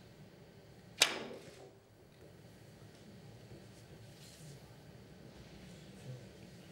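Billiard balls roll and click together.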